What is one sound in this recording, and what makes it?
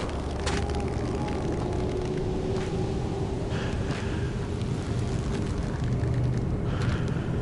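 A small flame crackles and sputters close by.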